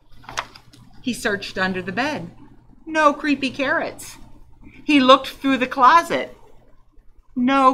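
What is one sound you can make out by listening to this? An older woman reads aloud expressively, close to a microphone.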